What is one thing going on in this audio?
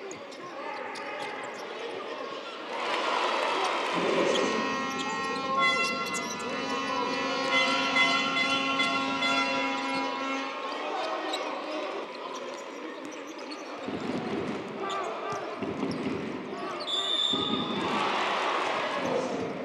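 A crowd cheers and chants in a large echoing arena.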